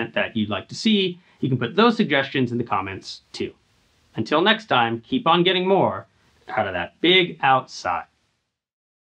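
A man speaks calmly and clearly into a microphone close by.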